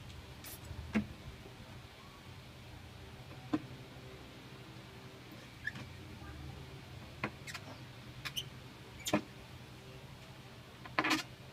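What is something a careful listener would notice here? A plastic bottle clicks and knocks as hands handle it.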